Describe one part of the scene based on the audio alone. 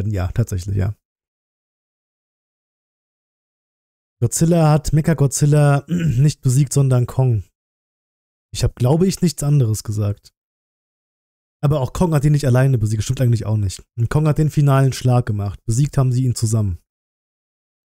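A man talks calmly and close into a microphone, with pauses.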